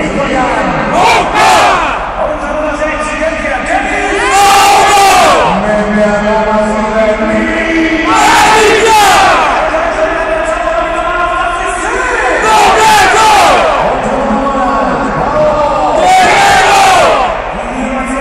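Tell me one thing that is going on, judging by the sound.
A large crowd shouts together in bursts in a huge echoing stadium.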